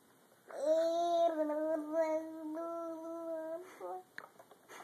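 A baby hums a long, steady note up close.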